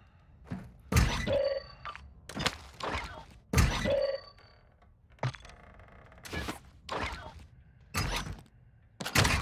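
Items rattle and clatter as they are picked up, in short bursts.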